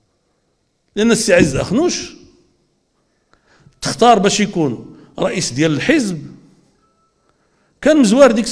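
An older man speaks forcefully into a microphone, with pauses between phrases.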